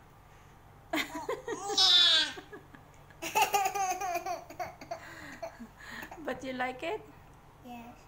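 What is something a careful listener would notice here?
A young girl laughs loudly and excitedly.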